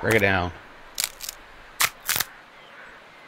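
Dry sticks snap and crack.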